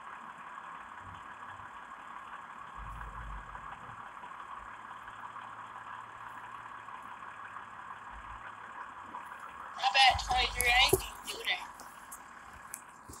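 A bus engine idles.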